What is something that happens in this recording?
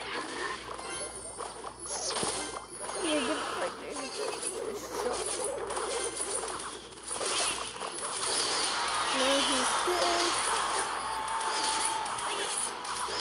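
Game battle effects clash and thump.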